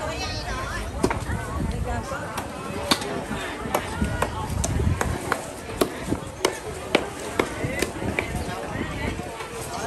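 Knocks and clicks sound as vendors handle goods.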